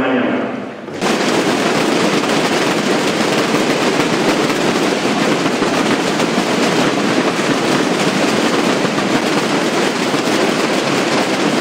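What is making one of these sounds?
Many drums roll loudly together outdoors.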